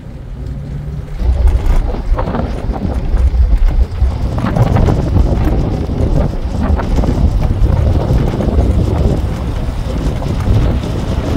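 Road noise rumbles inside a moving car on a paved road.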